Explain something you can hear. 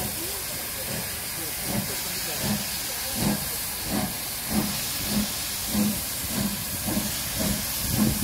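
Steam hisses from a locomotive.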